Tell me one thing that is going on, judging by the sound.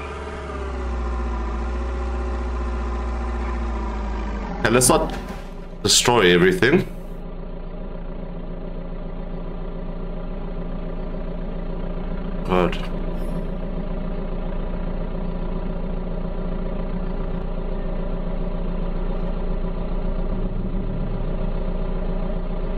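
A box truck engine drones as it drives.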